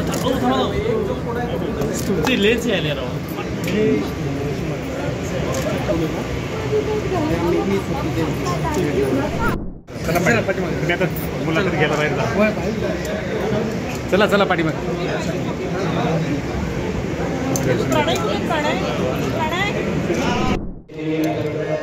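A crowd of men and women talk over one another close by.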